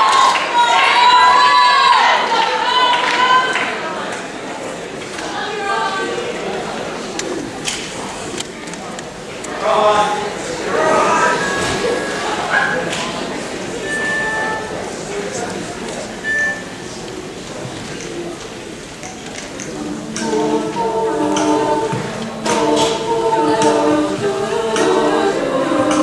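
A young woman sings and talks into a microphone through loudspeakers in a large hall.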